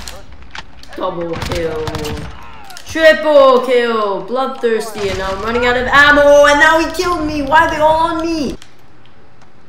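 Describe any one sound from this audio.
A young boy shouts and sings loudly and excitedly near a microphone.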